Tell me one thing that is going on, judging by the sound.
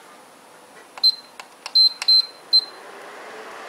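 An electronic cooktop beeps quickly as its buttons are pressed.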